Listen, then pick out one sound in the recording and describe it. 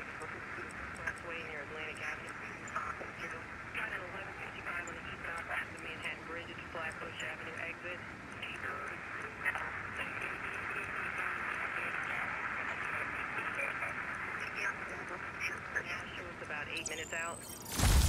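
An electronic tone warbles and wavers steadily.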